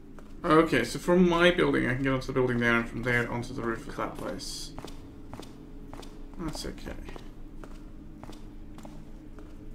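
Footsteps tap on hard ground.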